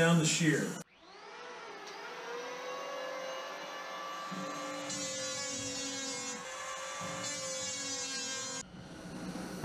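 A power planer whirs steadily as it cuts wood.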